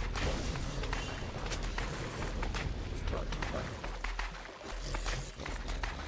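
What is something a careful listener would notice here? Magical spell effects whoosh and crackle in a video game.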